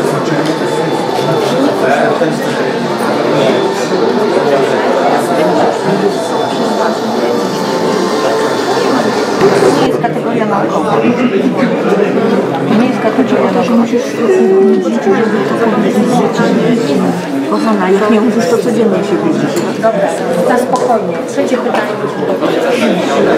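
A crowd of people chatter and murmur indoors.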